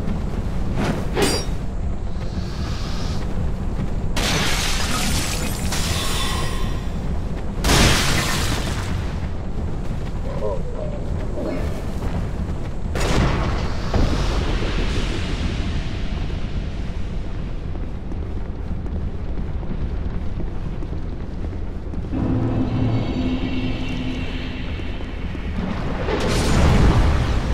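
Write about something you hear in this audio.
Footsteps crunch steadily on gravel and stone.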